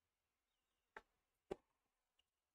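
A tennis ball is struck sharply by a racket.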